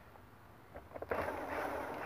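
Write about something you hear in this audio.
An electric drill whirs.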